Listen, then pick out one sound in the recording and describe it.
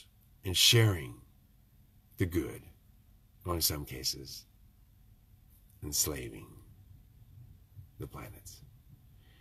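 An older man speaks calmly and close to a microphone, in short phrases with pauses.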